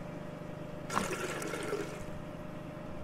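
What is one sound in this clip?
Fuel gurgles and splashes as it pours from a canister.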